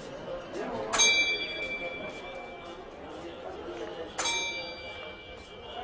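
A bell on a turning prayer wheel rings clearly.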